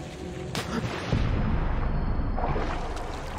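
Water splashes loudly as a body plunges in.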